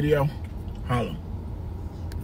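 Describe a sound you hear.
A man speaks with animation close by, in short bursts.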